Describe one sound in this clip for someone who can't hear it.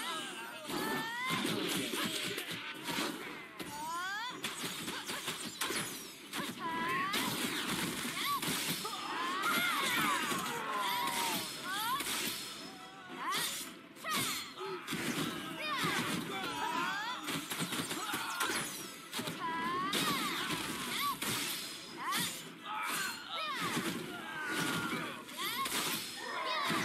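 Magic blasts crackle and whoosh during a fast fantasy battle.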